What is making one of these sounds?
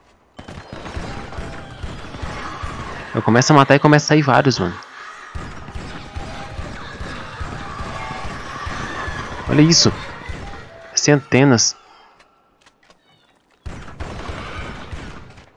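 A gun fires repeated shots.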